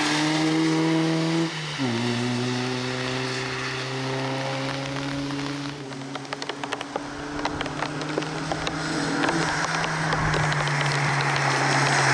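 A car engine roars loudly, dropping in pitch as it shifts gear.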